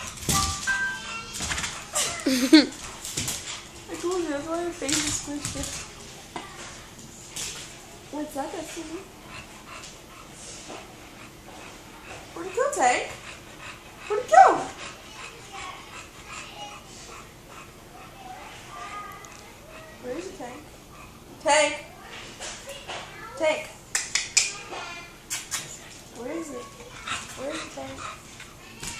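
A dog barks and yelps excitedly nearby.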